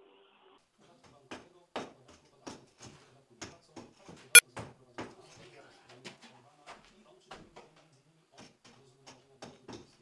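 A man knocks and taps on ceramic tiles.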